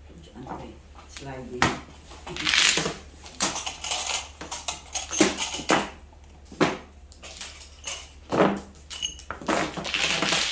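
Mahjong tiles rattle and clatter loudly as hands shuffle them.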